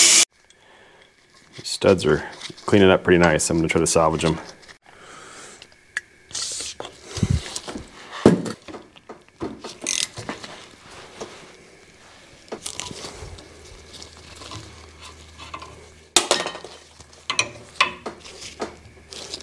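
Metal tools clink and clank against a vise.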